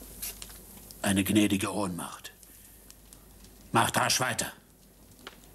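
An older man speaks in a low, stern voice close by.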